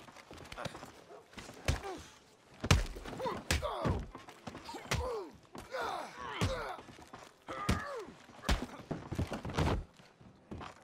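Fists land heavy punches with dull thuds.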